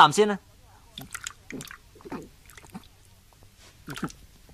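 A man gulps down a drink.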